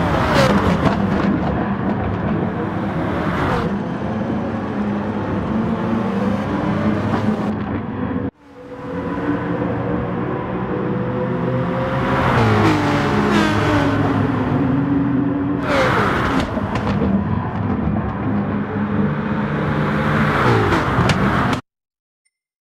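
Racing car engines roar and whine as they speed past, shifting gears.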